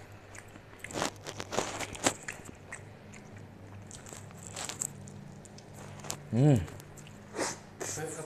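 A man chews and smacks his lips while eating.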